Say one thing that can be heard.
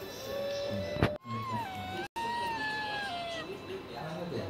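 A wolf howls, rising and falling in pitch.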